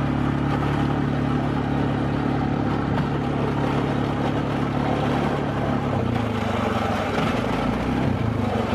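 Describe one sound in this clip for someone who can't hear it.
Tyres crunch over snow.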